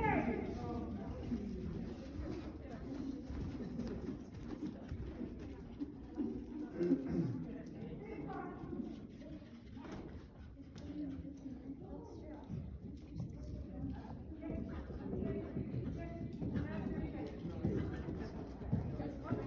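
Young girls and a woman talk and call out in a large echoing hall.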